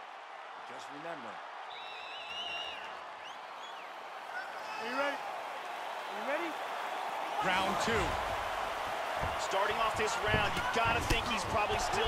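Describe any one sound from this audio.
A large crowd cheers and murmurs in a big arena.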